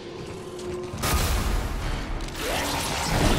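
A creature shrieks and snarls up close.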